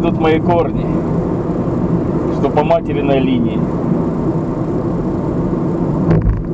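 A car engine hums steadily with tyres rumbling on the road.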